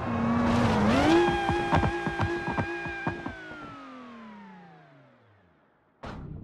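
A car engine roars steadily at high speed, then fades away.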